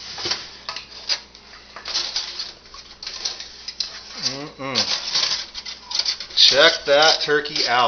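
Aluminium foil crinkles and rustles as it is pulled back.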